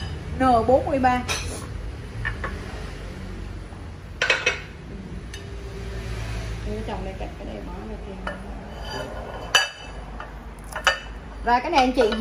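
Ceramic plates clink against a hard surface as they are lifted and set down.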